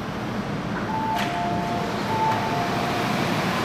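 Electronic chimes beep as train doors open.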